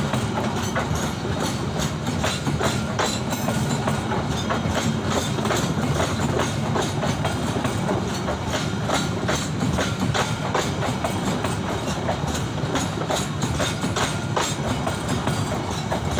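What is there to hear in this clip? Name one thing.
A passenger train passes close by with a deep rumble.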